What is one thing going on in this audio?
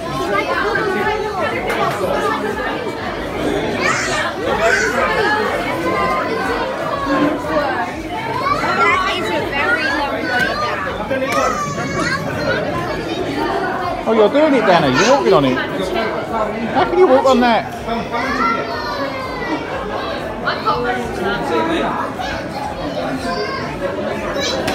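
A crowd of adults and children chatter and talk nearby.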